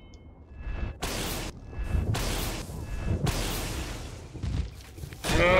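A magic spell crackles and whooshes.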